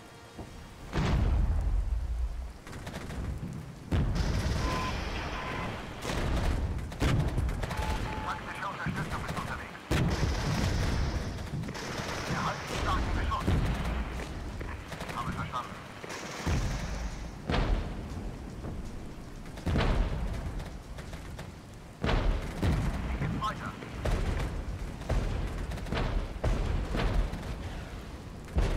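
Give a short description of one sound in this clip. Heavy guns boom in bursts.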